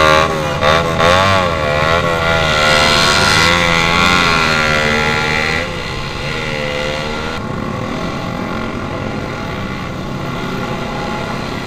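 Other motorcycles' engines drone nearby.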